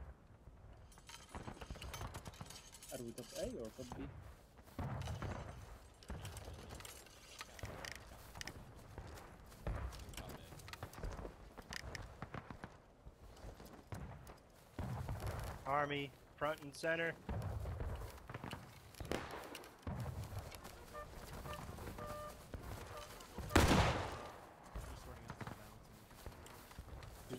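Footsteps swish through tall grass as a group of men march.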